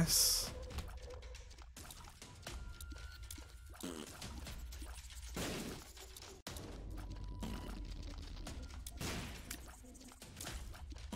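Video game sound effects pop and blip rapidly.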